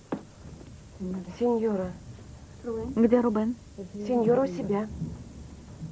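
A woman speaks firmly nearby.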